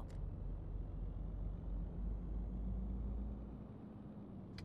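A truck engine rumbles low and steady, then dies down.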